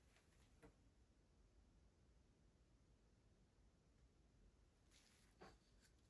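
A small plastic bottle squirts liquid paint.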